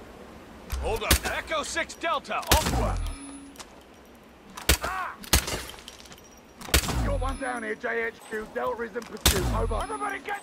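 A pistol fires sharp, loud shots.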